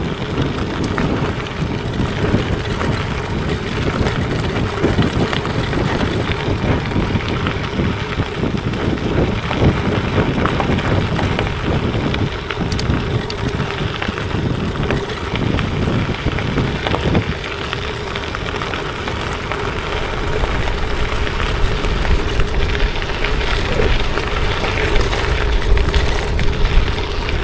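Wind rushes past loudly outdoors.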